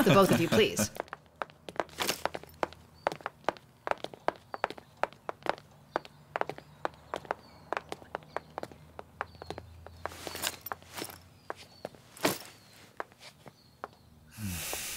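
Footsteps tap on a hard floor and stairs.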